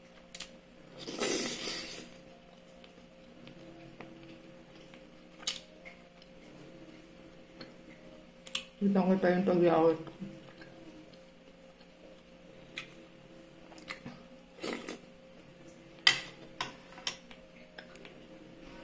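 A woman slurps and chews food close by.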